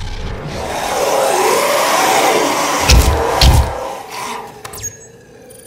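Monsters growl and snarl in a game.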